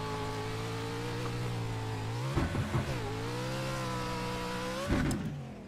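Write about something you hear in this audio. A racing car engine roars steadily, its pitch dipping and rising as it shifts and accelerates.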